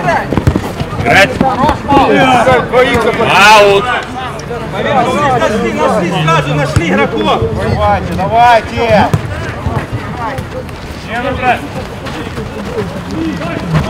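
Young men shout and call out to each other across an open pitch.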